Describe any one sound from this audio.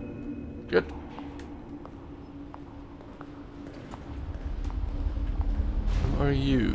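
Footsteps echo on a hard floor in a large hall.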